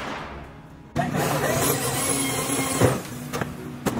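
A power drill whirs in short bursts.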